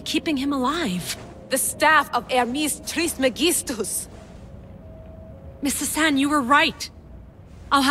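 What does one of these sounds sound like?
A middle-aged woman asks a question in a worried voice.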